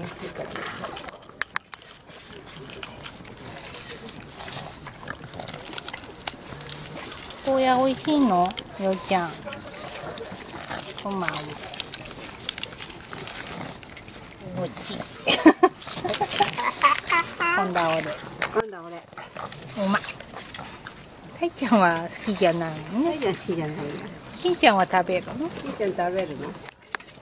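A pug chews and crunches on a piece of raw bitter melon.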